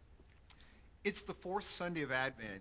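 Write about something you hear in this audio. A middle-aged man speaks calmly to a microphone in a large echoing hall.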